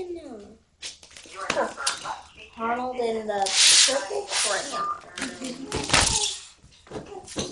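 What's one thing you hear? A young girl speaks close by, with animation.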